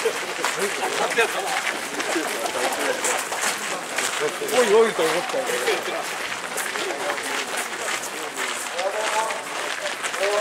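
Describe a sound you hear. A crowd of people murmurs and chatters outdoors.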